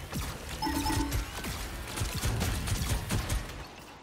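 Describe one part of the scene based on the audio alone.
A laser beam hums loudly.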